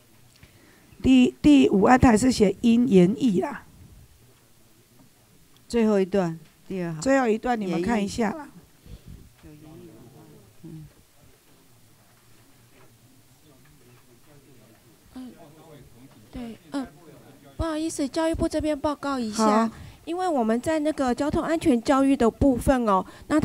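A man speaks calmly into a microphone, heard over loudspeakers in a large room.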